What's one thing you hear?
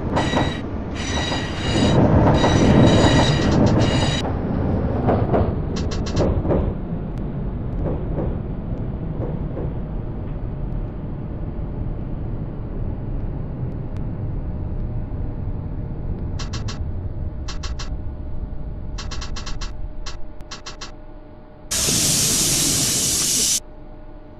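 A subway train rumbles steadily along the track through a tunnel.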